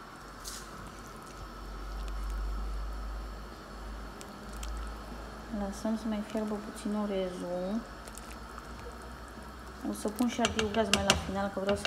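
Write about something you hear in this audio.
A wooden spoon stirs soup in a metal pot.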